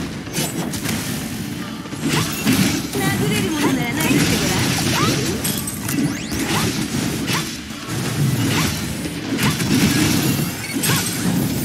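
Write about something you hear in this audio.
Game weapons slash and clash rapidly.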